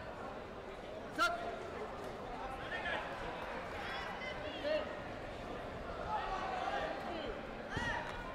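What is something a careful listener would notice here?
Spectators and coaches shout in a large echoing hall.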